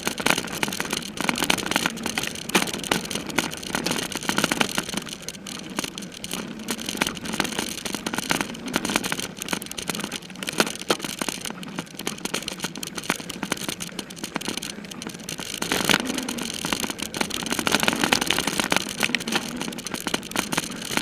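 Bicycle tyres rattle and crunch over a bumpy dirt trail.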